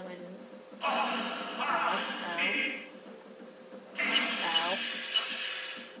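Video game spell effects whoosh and chime in bursts.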